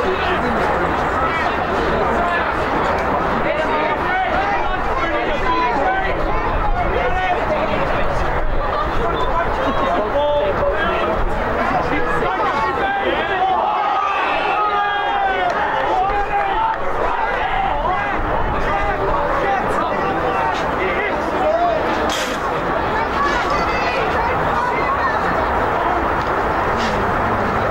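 Wind blows across an open field.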